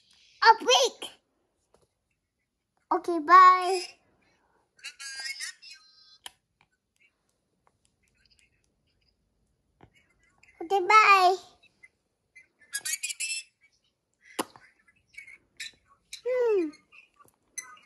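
A toddler speaks in short bursts close by.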